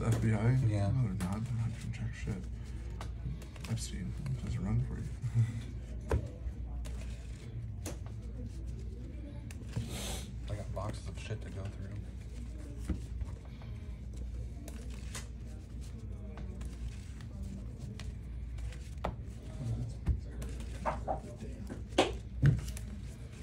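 Playing cards shuffle and riffle softly in hands.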